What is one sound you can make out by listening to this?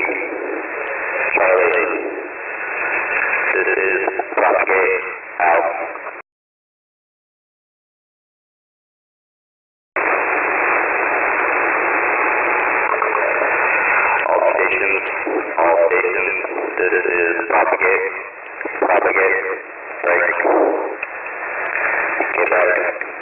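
Shortwave radio static hisses and warbles through a receiver.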